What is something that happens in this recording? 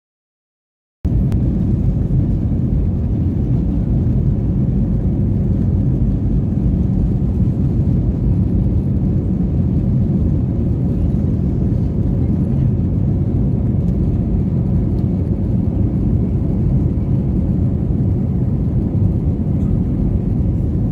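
A jet engine roars steadily as an airplane taxis on a runway.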